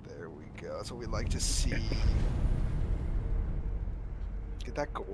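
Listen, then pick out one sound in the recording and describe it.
A deep magical rumble swells and fades.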